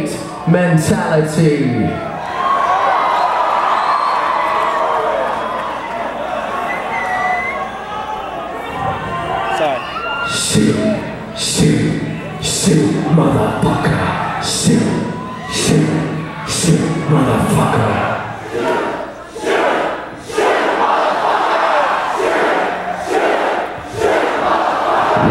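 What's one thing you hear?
A man sings and screams into a microphone through loud speakers.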